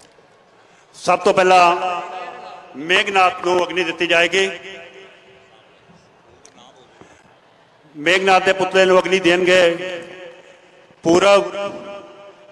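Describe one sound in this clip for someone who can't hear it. A crowd of men shouts slogans loudly together outdoors.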